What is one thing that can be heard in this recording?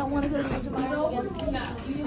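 A second girl laughs in the background.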